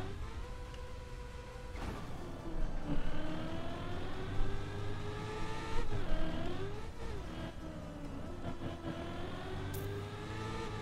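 A racing car engine whines steadily, rising and falling in pitch.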